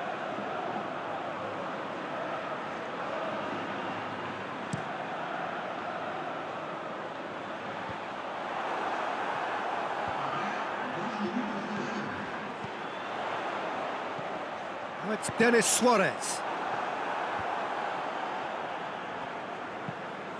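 A stadium crowd murmurs and roars.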